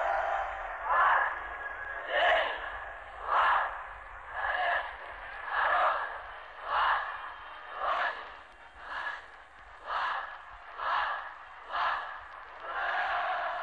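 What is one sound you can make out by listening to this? A large crowd chants together in loud, rhythmic bursts outdoors.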